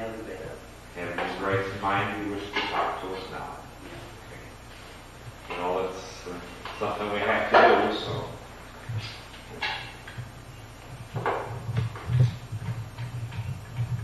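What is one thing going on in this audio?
Another man asks questions calmly.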